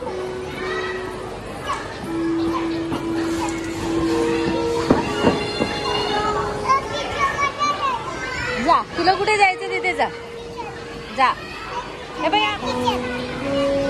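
Electronic piano notes ring out as a small boy steps on a floor mat.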